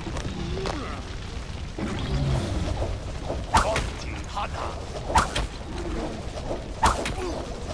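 Fire crackles and roars.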